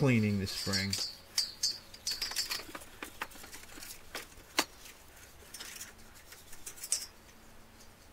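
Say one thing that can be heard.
Thin metal strips clink and rattle as they are handled.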